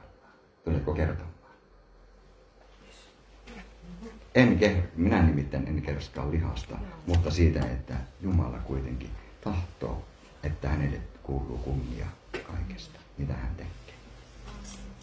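A middle-aged man speaks with animation, close into a microphone, in a room with some echo.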